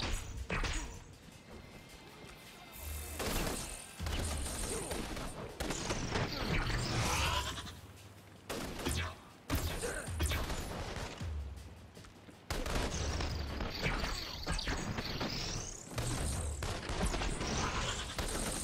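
Crackling energy blasts burst and fizz.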